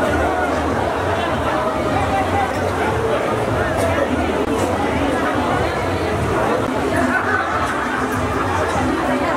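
A crowd of adults talks and murmurs close by.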